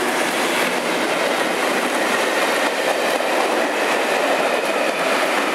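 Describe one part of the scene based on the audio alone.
Railway carriages rumble and clatter past close by.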